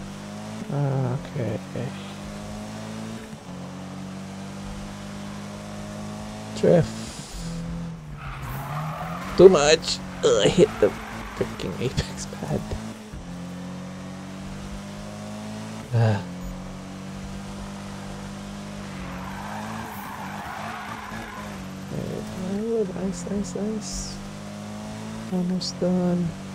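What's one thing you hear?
A racing car engine hums steadily at high revs.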